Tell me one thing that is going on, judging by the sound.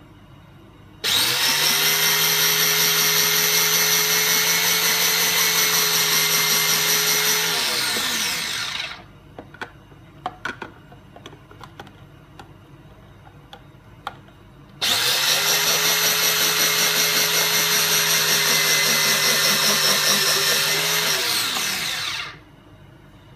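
An electric grater whirs loudly, then slows and winds down.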